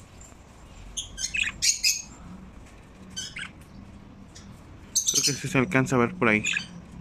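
Budgerigars chirp and twitter close by.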